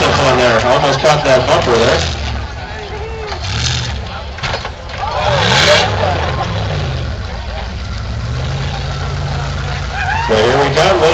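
An engine revs hard, rising and falling.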